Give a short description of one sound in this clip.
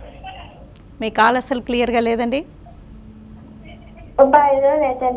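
A woman speaks calmly into a microphone, as if reading out.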